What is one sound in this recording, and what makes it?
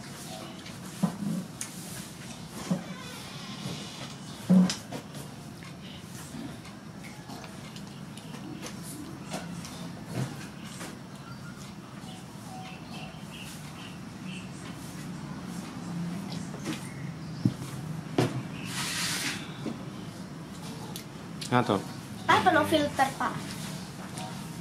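A young boy speaks softly close by.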